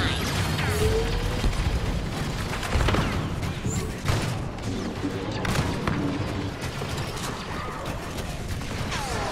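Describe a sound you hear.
Laser blasters fire in sharp bursts with zapping, falling tones.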